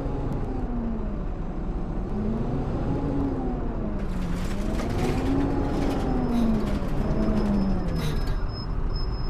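A bus drives up and its engine whines, rising and falling.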